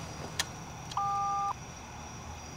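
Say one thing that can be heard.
An intercom buzzer sounds with a steady tone.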